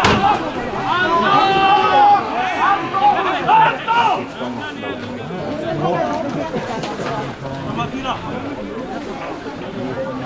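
Young players shout to one another across an open outdoor field.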